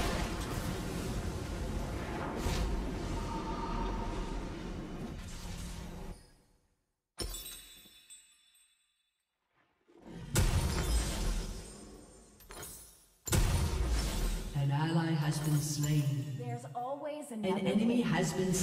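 Game sound effects of spells and attacks play.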